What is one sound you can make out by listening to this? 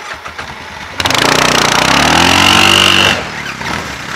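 An all-terrain vehicle engine revs loudly and then settles.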